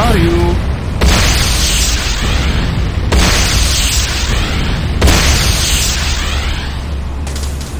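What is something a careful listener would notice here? Heavy blasts and gunfire burst in quick rounds.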